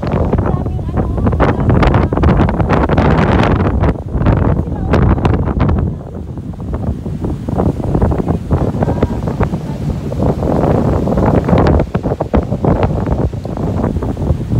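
A young man speaks close by, raised over the wind.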